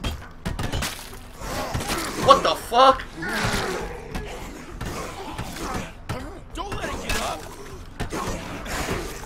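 Heavy blows thud in a scuffle.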